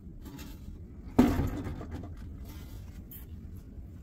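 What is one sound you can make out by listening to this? A metal panel knocks and rattles as hands handle it.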